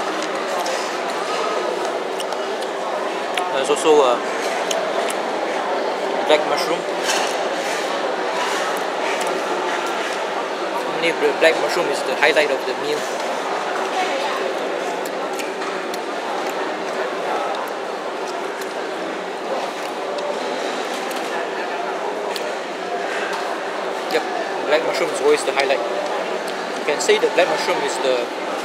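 A busy room murmurs with many voices.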